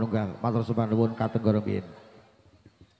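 A gamelan ensemble plays loudly through loudspeakers, then stops.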